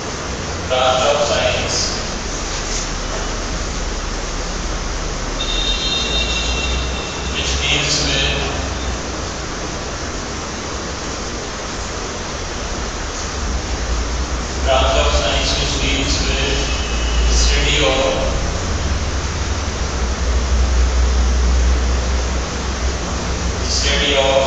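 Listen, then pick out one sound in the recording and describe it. A young man speaks calmly through a headset microphone.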